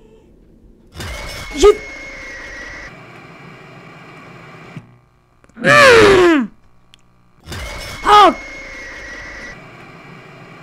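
A creature lets out a sudden, loud, piercing shriek.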